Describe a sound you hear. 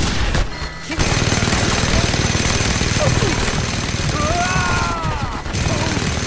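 A heavy machine gun fires rapidly.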